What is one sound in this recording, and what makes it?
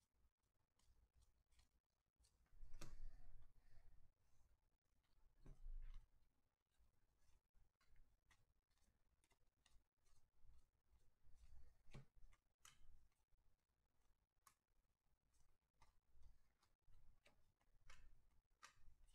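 Trading cards flick and slide against each other as they are shuffled by hand.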